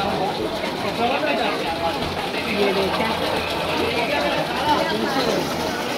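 Water pours and splashes into a deep well.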